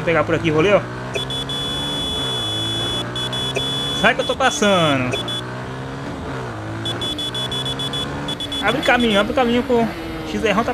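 A motorcycle engine hums steadily, its pitch rising and falling as it speeds up and slows down.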